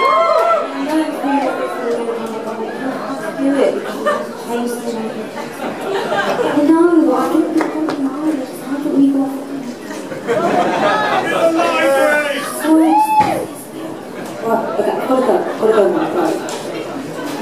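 A woman sings into a microphone over loudspeakers.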